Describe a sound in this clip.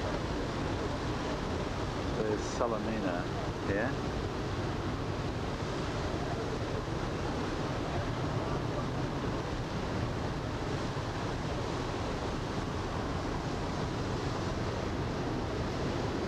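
Wind buffets steadily outdoors on open water.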